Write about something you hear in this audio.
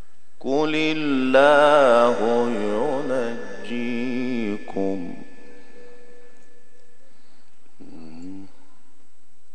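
A man chants melodically into a microphone, heard through loudspeakers.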